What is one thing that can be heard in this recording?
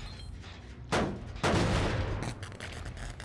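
A metal machine clanks and rattles as it is kicked.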